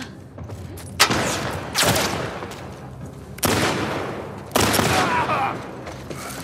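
Gunshots ring out with a loud echo.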